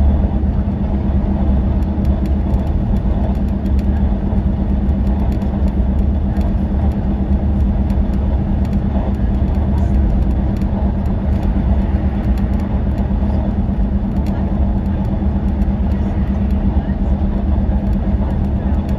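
A vehicle's engine drones steadily at speed, heard from inside the cabin.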